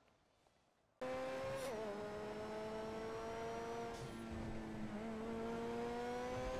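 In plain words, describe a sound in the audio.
A sports car engine roars steadily, its pitch dipping and climbing as gears shift.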